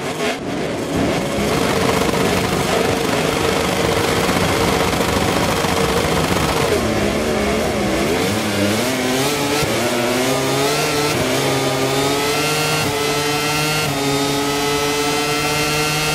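Racing motorcycle engines roar and climb in pitch through the gears as the bikes accelerate away.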